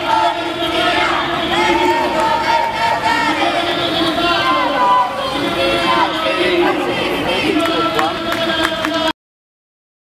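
A large crowd sings and chants together outdoors.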